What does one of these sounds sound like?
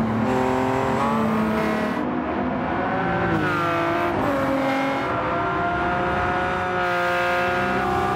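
Racing car engines roar loudly, their pitch rising and falling as the cars shift gears.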